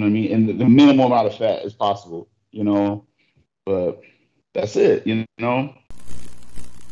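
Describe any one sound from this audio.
A man speaks calmly into a phone microphone, close by.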